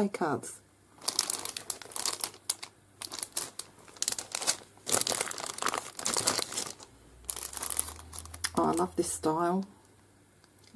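Plastic sticker packs rustle and crinkle as they are handled.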